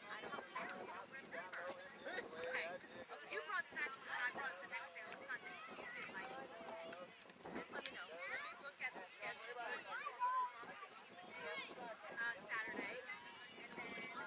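A man talks to the children nearby.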